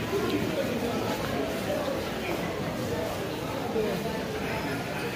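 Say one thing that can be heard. Many people's voices chatter in a busy indoor hall with a soft echo.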